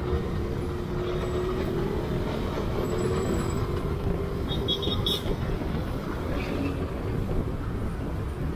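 A motorcycle engine hums steadily up close as it rides along.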